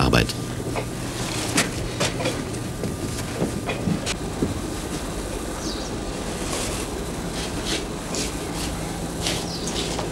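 Heavy earthenware jugs thud and scrape on a stone floor.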